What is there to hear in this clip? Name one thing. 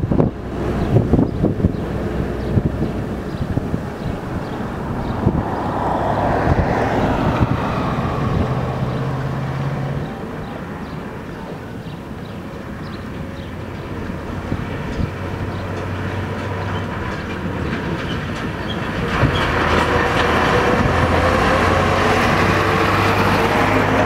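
A heavy truck engine rumbles as it approaches and passes close by.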